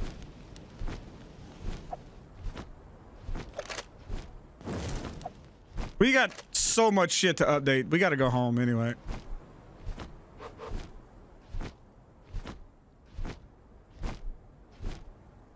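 Large wings flap in a steady, repeating beat.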